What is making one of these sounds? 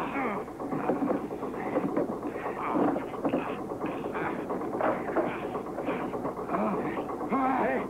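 Several men shout excitedly up close.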